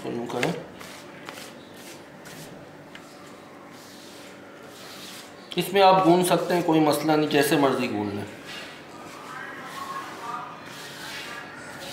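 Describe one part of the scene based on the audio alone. Hands rub and crumble dry flour in a metal bowl.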